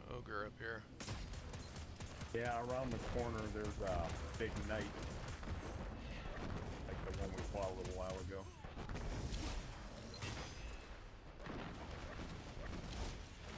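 Gunfire bursts in rapid shots.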